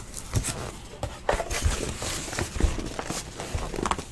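A cardboard box thumps and scrapes on a table nearby.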